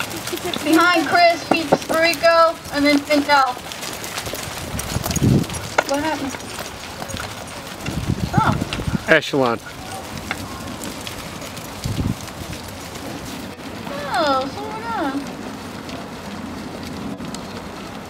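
Horses' hooves thud on soft sand at a walk.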